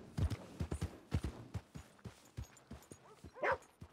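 Horse hooves clop steadily on hard ground.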